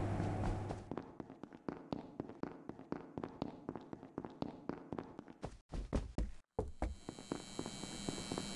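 Quick footsteps patter on a metal floor.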